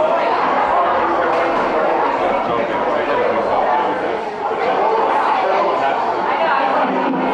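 A live band plays loudly in a large echoing hall.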